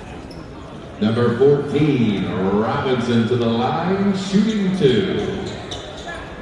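Spectators nearby cheer and shout loudly.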